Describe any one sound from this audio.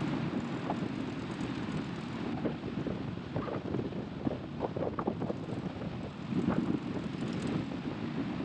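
A heavy diesel engine rumbles steadily while driving along a road.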